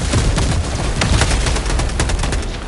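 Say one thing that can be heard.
A large fiery blast roars close by.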